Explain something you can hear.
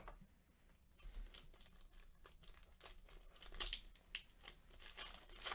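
A plastic wrapper crinkles and tears as it is opened.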